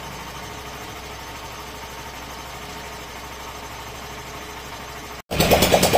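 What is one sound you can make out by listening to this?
A motorcycle engine idles steadily nearby.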